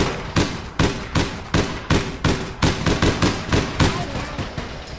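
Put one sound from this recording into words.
A gun fires in rapid, loud shots that echo.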